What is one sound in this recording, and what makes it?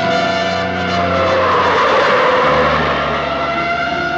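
A car engine rumbles as the car speeds past.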